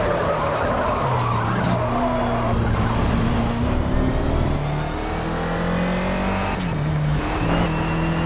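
A racing car's gears shift with sudden drops in engine pitch.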